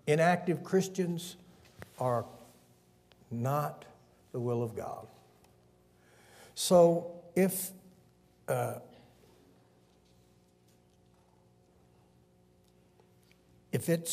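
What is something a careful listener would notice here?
An elderly man speaks slowly and deliberately into a microphone in a large echoing hall.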